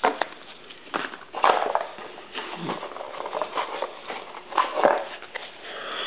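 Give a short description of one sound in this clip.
A cardboard box scrapes and rustles as it is handled.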